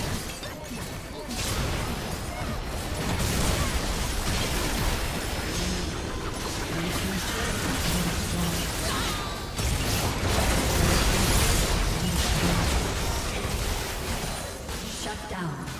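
Magic spells crackle and blast in a chaotic fight.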